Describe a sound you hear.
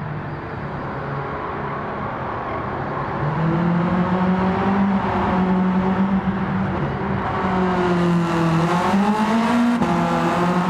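A car engine revs hard, rising and falling in pitch as the gears shift.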